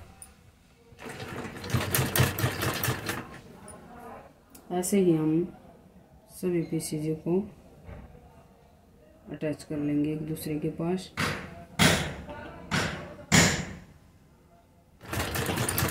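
A sewing machine whirs in short bursts as it stitches.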